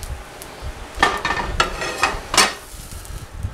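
A metal pan clatters on a stove.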